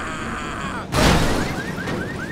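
A body slams onto a car roof with a heavy thud.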